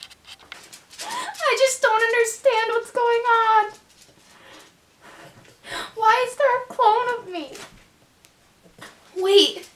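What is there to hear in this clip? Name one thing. A young woman whines in a high voice close by.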